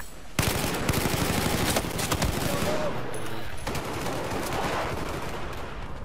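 Automatic gunfire rattles in loud rapid bursts.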